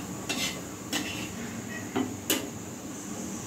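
A metal pan clanks against a stove.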